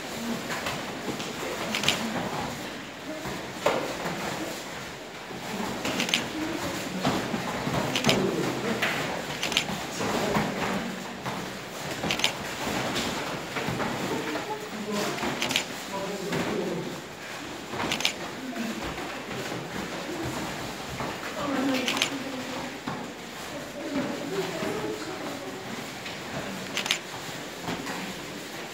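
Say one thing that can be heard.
A woman speaks calmly to a group, heard from a short distance.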